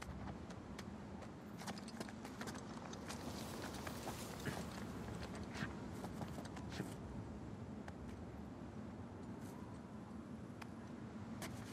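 A climber's hands grip and scrape on rock ledges.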